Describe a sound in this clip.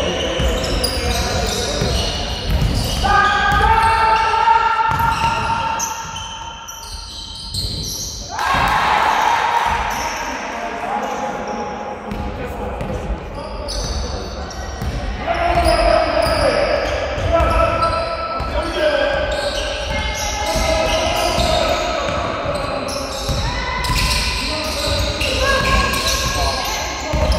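A basketball bounces repeatedly on a wooden floor in an echoing hall.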